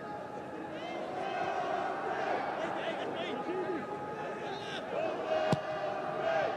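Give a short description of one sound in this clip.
A large stadium crowd chants and cheers steadily in the distance.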